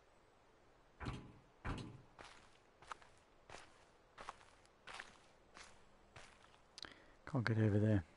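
Footsteps crunch steadily on sandy ground.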